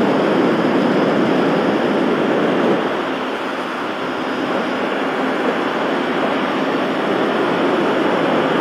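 A motorcycle engine hums steadily underneath.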